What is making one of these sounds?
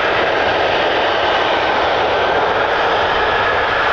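A jet engine whines loudly nearby.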